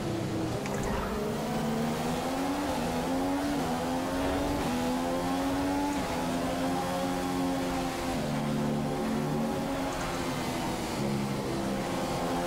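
A racing car engine screams at high revs, rising in pitch as it shifts up through the gears.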